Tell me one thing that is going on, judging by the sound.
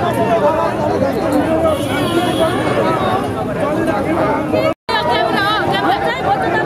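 A large crowd shouts and chants loudly outdoors.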